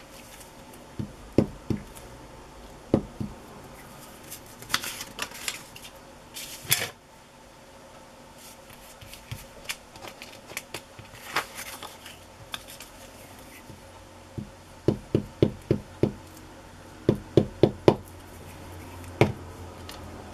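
A glue stick taps and knocks repeatedly against paper on a table.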